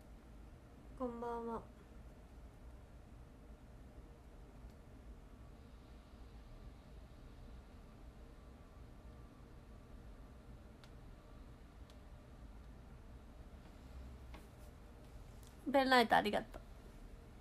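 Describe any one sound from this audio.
A young woman speaks briefly and softly, close by.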